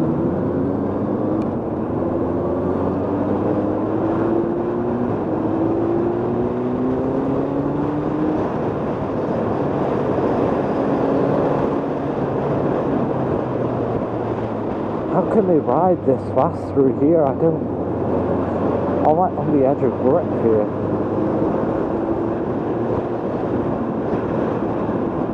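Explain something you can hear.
A motorcycle engine hums steadily and rises in pitch as it speeds up.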